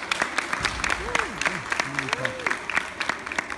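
Children whoop and cheer.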